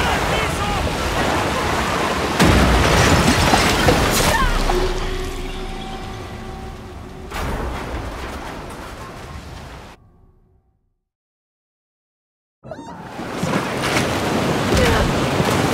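Floodwater rushes and churns loudly.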